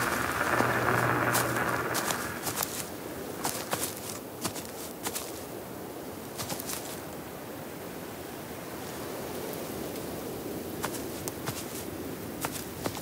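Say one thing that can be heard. Wind rustles through the leaves of trees.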